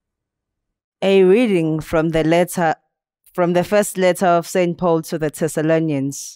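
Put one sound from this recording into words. A boy reads aloud clearly into a microphone.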